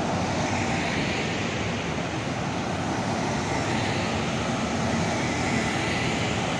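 Vans drive past on a road.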